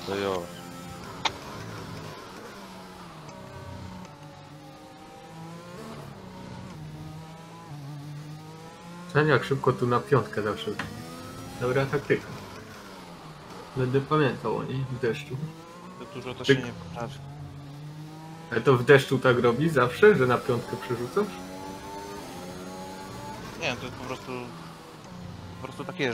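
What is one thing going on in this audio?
A racing car engine whines, rising and falling in pitch as it shifts gears.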